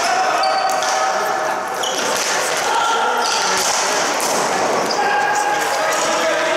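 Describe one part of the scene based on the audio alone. Shoes squeak on a hard floor as players run.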